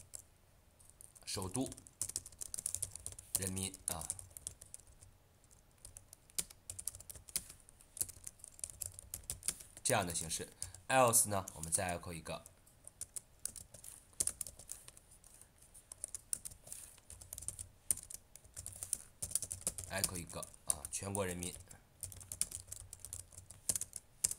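Keyboard keys click rapidly in quick bursts of typing.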